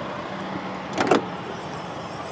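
A car hood is opened with a knock.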